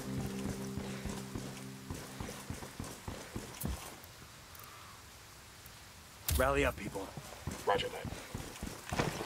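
Boots run on paving stones with quick, hard steps.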